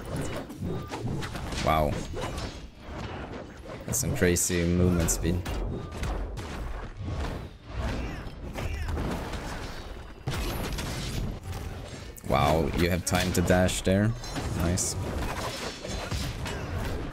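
Cartoonish fighters trade blows with thuds and whooshes.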